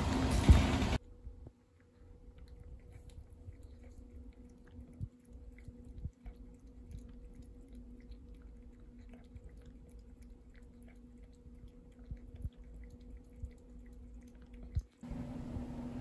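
A cat laps water with quick, soft licks.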